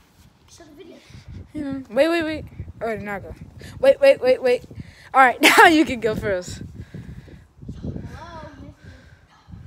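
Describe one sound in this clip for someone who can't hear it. A boy talks excitedly up close.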